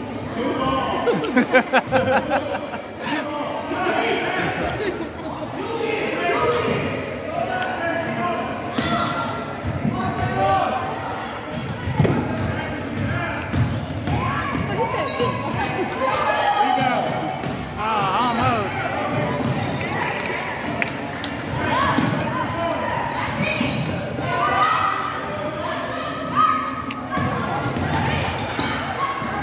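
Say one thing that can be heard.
Spectators and players call out and shout in an echoing gym.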